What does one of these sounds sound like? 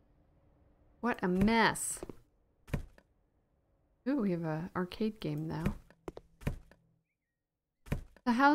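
A young woman talks expressively, close to a microphone.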